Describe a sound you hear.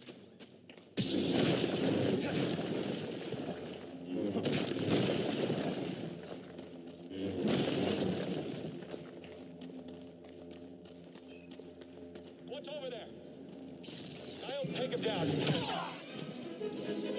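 A glowing energy blade hums and swooshes as it swings.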